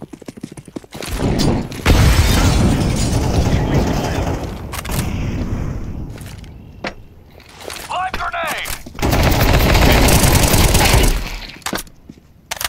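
A rifle fires in loud, rapid bursts.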